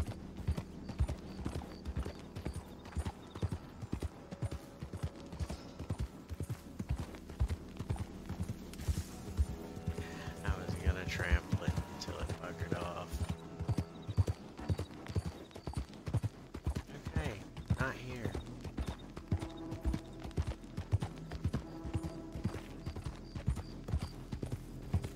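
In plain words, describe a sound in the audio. Hooves thud steadily on a dirt trail.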